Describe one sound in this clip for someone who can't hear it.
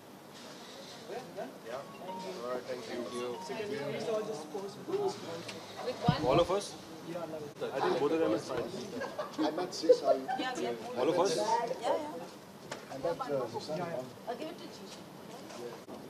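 Several men and women chatter and laugh close by in a lively crowd.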